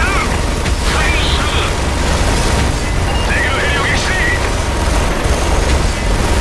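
A heavy machine gun fires in a continuous stream.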